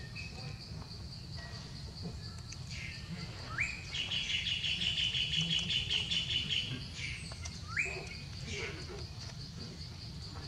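Dry leaves rustle under a monkey's steps.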